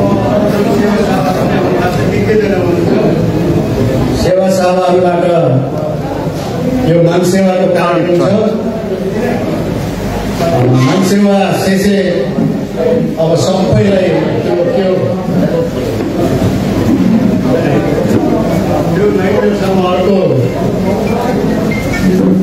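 A man speaks over a loudspeaker, echoing through a large hall.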